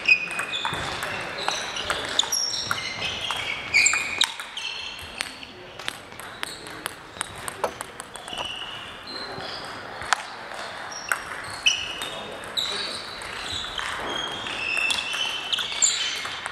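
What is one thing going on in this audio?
A ping pong ball clicks back and forth off paddles and a table in an echoing hall.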